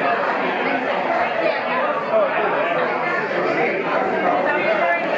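A live band plays music through loudspeakers in a hall.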